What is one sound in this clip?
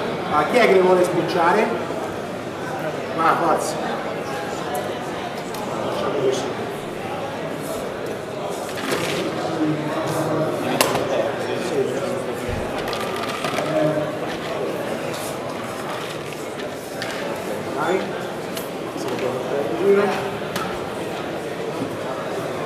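A man talks into a microphone with animation, heard through loudspeakers in a large room.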